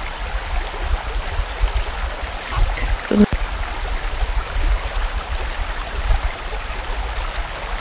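A stream rushes and burbles over rocks.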